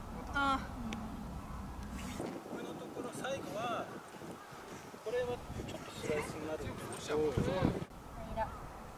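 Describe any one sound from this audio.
A man talks casually outdoors.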